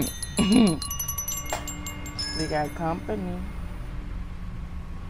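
Small metal bells chime and ring out.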